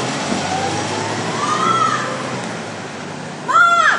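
A car engine hums as the car pulls away.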